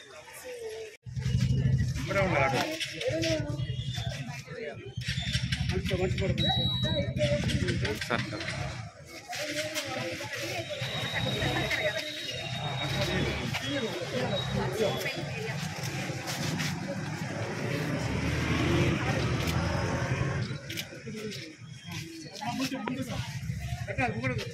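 Women talk with each other nearby.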